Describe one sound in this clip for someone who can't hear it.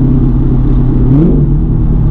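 A car engine revs up sharply near the end.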